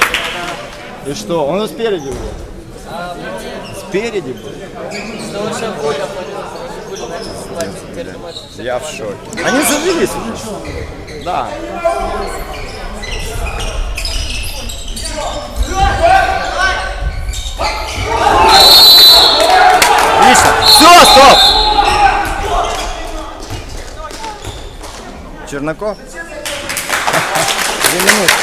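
A handball bounces on the court.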